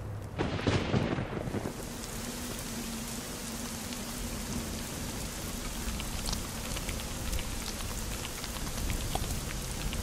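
Rain patters steadily.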